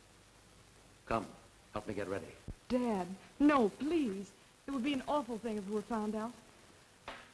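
A woman speaks anxiously.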